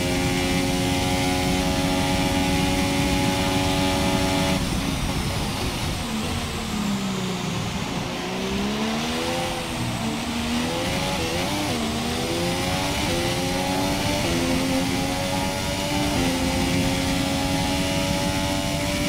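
A racing car engine screams at high revs, drops in pitch as the car slows for a corner, then climbs again through quick gear changes.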